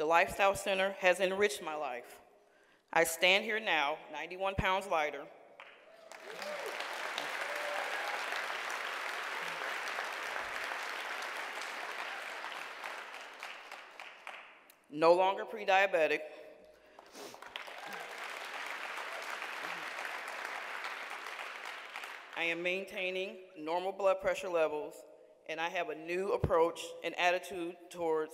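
A woman speaks slowly and with feeling into a microphone.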